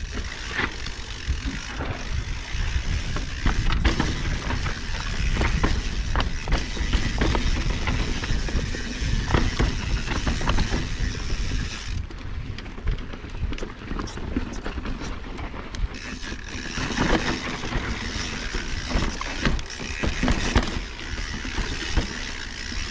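Bike tyres crunch and rattle over rocky dirt.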